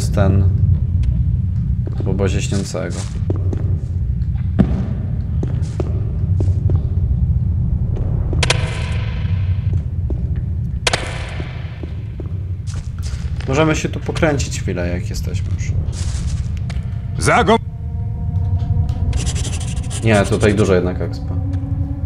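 A man talks through a microphone with animation.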